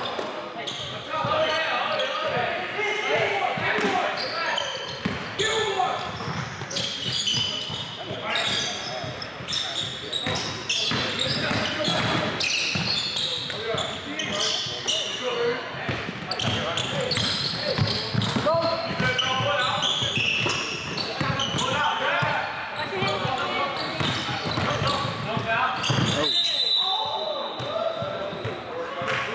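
Sneakers squeak on a wooden floor in an echoing gym.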